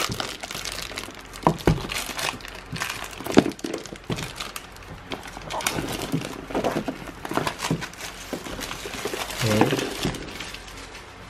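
Plastic wrap crinkles and rustles as hands tear it off.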